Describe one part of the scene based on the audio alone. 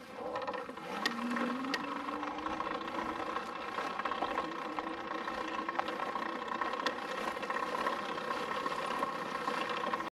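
An electric motor hums steadily as a motorbike is pushed along.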